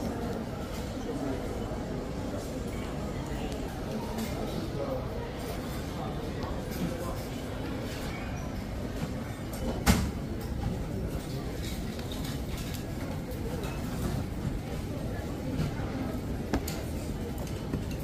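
A crowd of shoppers murmurs far off in a large room.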